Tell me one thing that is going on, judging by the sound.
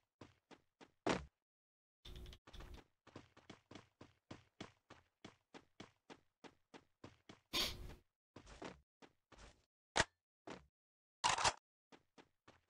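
Gunshots crack loudly in short bursts.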